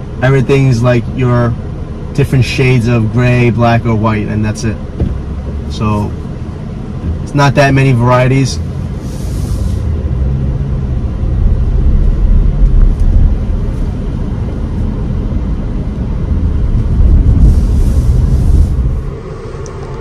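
A car engine hums and tyres rumble on the road.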